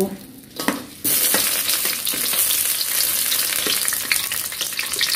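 Onions hiss and sizzle as they drop into hot oil.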